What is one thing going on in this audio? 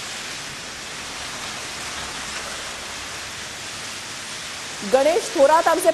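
Heavy rain pours down on a street.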